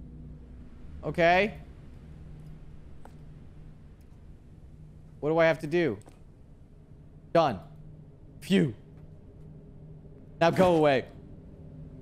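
A young man speaks in short bursts close to a microphone.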